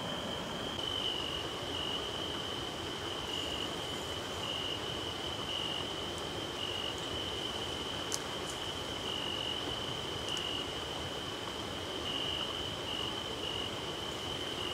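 Plants rustle as a man shifts his footing in tall weeds.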